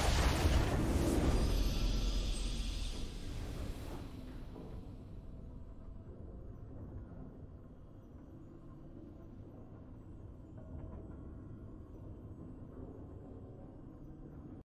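Triumphant fanfare music plays softly.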